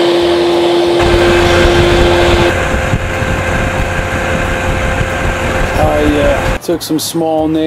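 An outboard motor drones loudly up close.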